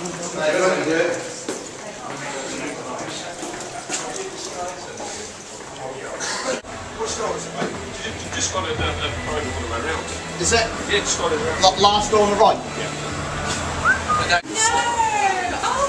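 Footsteps tread along a hard floor.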